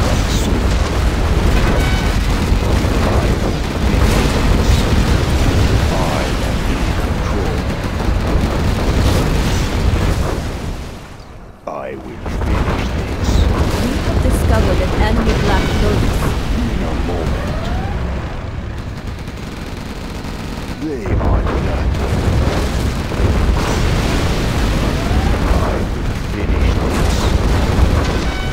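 Explosions boom and rumble one after another.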